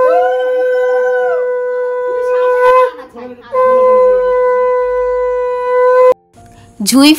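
A conch shell blows a loud, steady, droning note, pausing briefly before sounding again.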